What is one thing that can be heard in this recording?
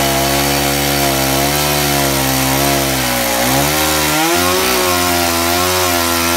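A chainsaw engine roars loudly and its pitch wavers as it cuts into wood.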